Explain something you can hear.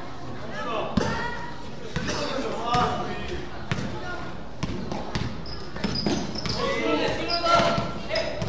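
A basketball bounces on a hard floor with sharp thuds.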